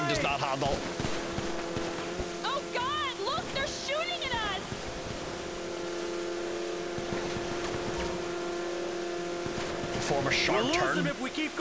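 A man speaks casually and close to a microphone.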